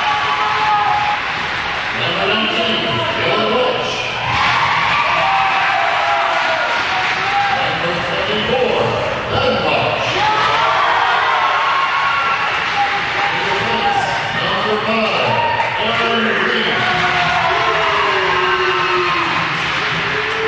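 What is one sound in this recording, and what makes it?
A crowd of people chatters and calls out in a large echoing hall.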